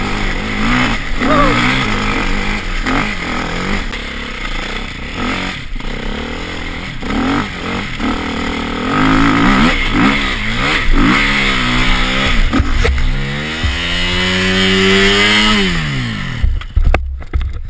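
A motorbike engine roars and revs up and down close by, then sputters and dies.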